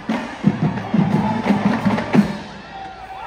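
A marching band plays brass and drums outdoors.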